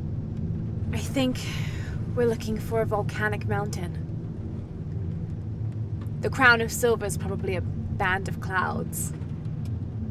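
A young woman speaks quietly and calmly.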